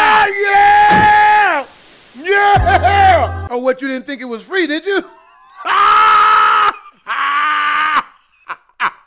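A man sings and wails loudly and dramatically close to a microphone.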